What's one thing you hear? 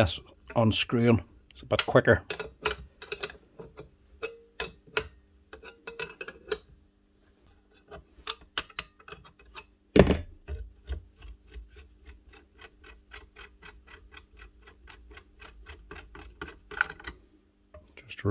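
A wrench clicks and taps against metal parts.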